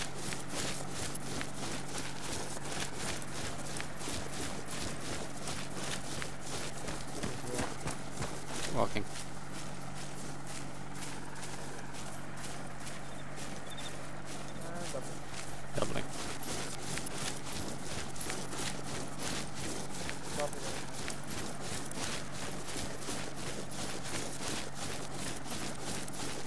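Footsteps rustle quickly through tall grass.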